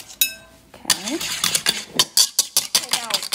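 A wire whisk beats eggs quickly against a bowl.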